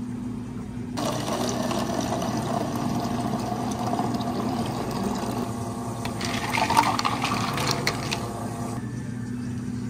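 An espresso machine hisses and whirs.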